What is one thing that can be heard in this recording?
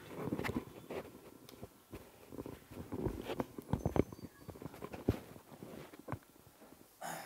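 A clip-on microphone rustles and bumps against a shirt up close.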